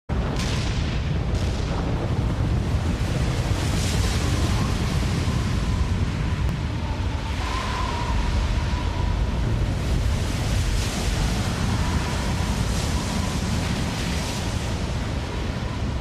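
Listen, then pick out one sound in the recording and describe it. A large crowd murmurs and cheers in a huge echoing arena.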